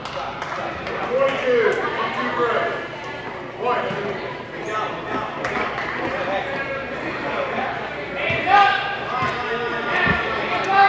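Children and adults chatter and call out in a large echoing hall.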